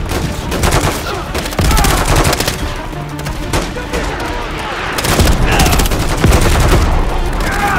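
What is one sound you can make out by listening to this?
A gun fires short bursts of rapid shots close by.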